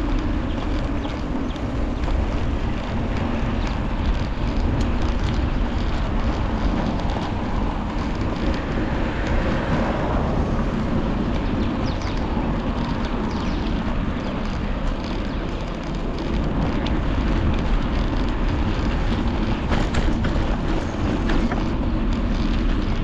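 Wind buffets loudly across a microphone outdoors.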